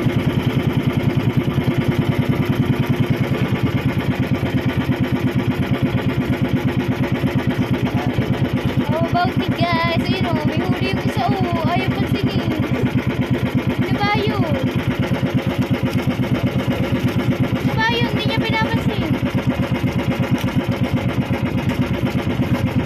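A boat engine chugs steadily and loudly close by.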